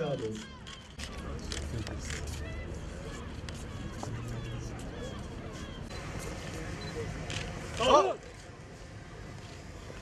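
A crowd of men murmur and talk nearby.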